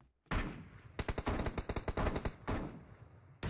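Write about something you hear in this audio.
Rapid gunfire bursts loudly up close.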